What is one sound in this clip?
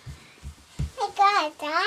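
A little girl squeals in a high voice close by.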